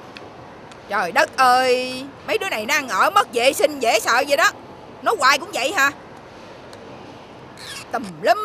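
A middle-aged woman calls out loudly outdoors.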